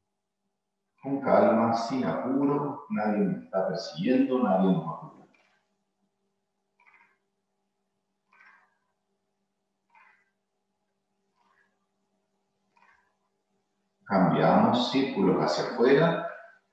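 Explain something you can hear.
A man speaks calmly and clearly into a microphone, giving instructions in short phrases.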